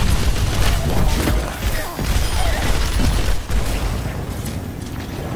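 Video game weapons fire in rapid bursts with sharp electronic zaps.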